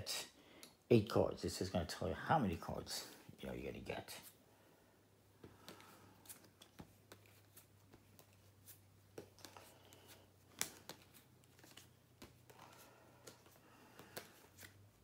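Playing cards are handled and set down with soft taps.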